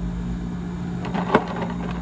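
A plastic cup knocks on a hard counter.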